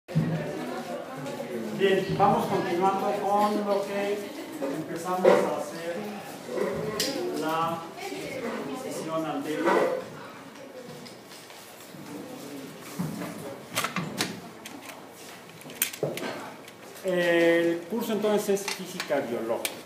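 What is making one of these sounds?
A man speaks calmly, lecturing in a room with a slight echo.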